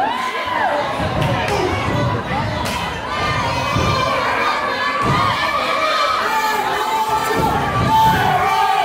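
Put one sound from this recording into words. Bodies land on a wrestling ring with heavy thuds.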